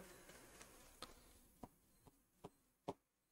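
A pen taps and scratches on paper.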